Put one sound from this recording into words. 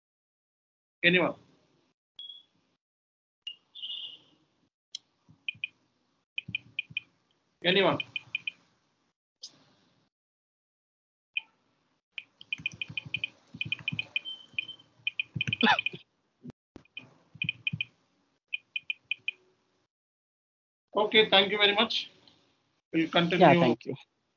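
A man speaks through an online call, with pauses.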